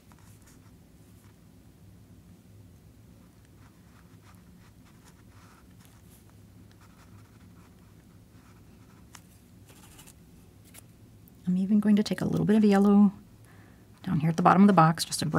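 A paintbrush brushes softly against a canvas.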